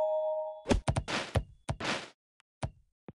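A golf ball is hit with a sharp knock and skids along.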